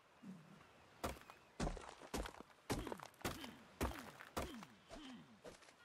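A stone hatchet strikes a rock with sharp, repeated knocks.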